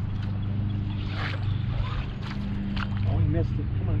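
Water splashes near a boat.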